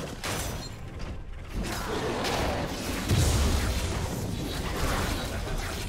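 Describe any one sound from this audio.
Video game fighting effects clash and burst with low booms.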